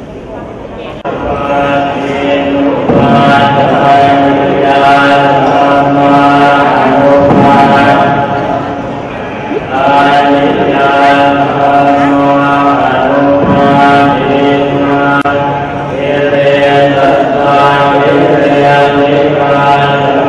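A large crowd of men and women chants together in a steady drone.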